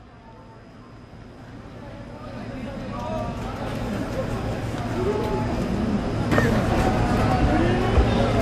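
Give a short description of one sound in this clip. Hand cymbals crash.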